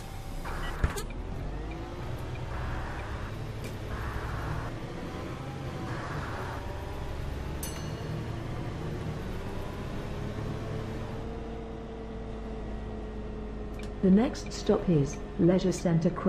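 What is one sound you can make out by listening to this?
A bus engine hums and whines steadily as it drives along.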